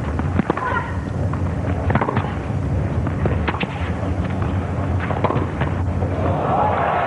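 A tennis ball is struck back and forth with rackets.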